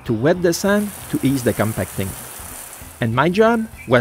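Water sprays from a hose onto sand.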